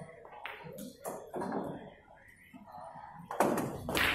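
A cue strikes a pool ball with a sharp tap.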